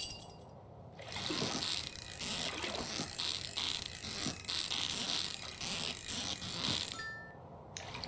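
A fishing reel whirs steadily in a game.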